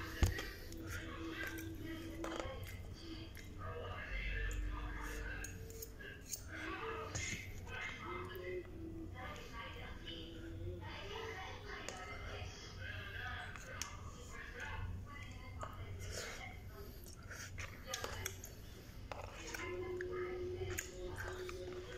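A fork scrapes and taps in a plastic food container.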